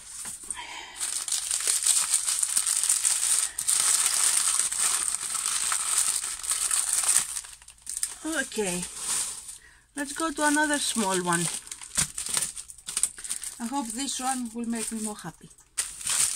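Plastic wrapping crinkles and rustles up close.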